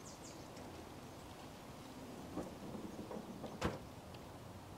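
A car hood slams shut.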